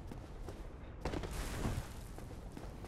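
A heavy thud sounds as an armoured figure lands from a jump.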